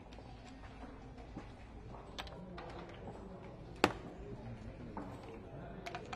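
Game pieces click as they are moved on a wooden board.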